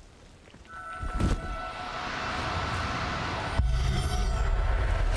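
A magic spell crackles and hums.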